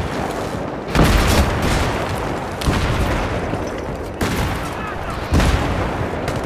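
Explosions boom loudly nearby.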